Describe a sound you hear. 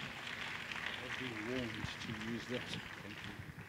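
An elderly man speaks into a microphone with animation, heard through loudspeakers in a large echoing hall.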